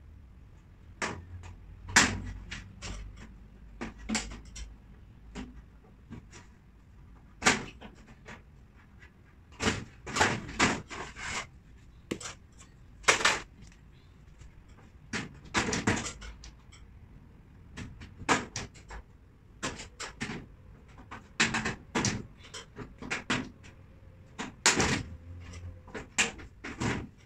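Wooden cabinet panels knock and clatter as they are handled.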